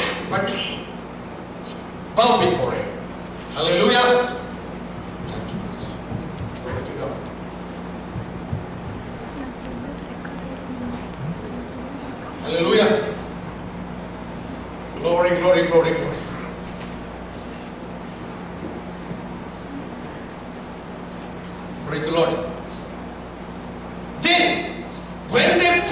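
A man speaks with animation through a microphone and loudspeakers in an echoing hall, in short bursts with pauses.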